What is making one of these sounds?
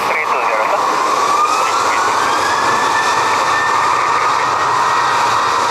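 Tyres roll and hiss on a wet runway.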